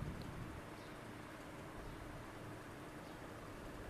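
A wooden rolling pin rolls softly over dough.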